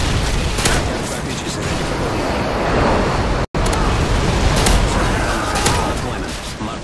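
Shotgun blasts ring out sharply, a few times.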